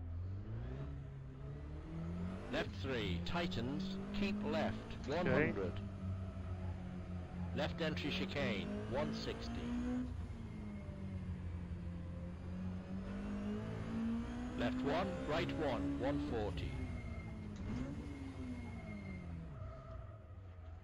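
A racing car engine drones steadily, rising and falling in pitch as it revs.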